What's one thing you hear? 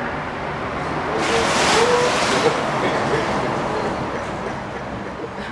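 Water splashes loudly as an alligator thrashes at the surface.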